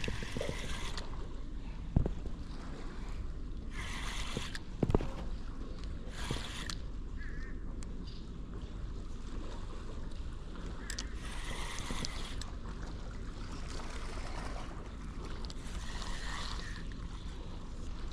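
A fishing reel whirs as its handle is cranked.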